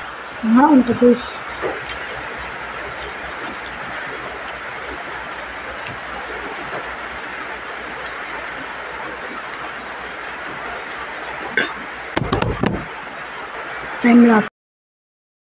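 A young boy speaks close to a phone microphone.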